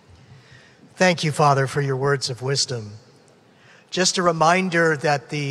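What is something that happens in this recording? A middle-aged man speaks calmly into a microphone over loudspeakers in a large hall.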